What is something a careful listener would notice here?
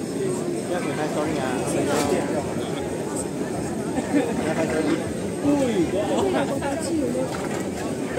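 Men call out loudly nearby.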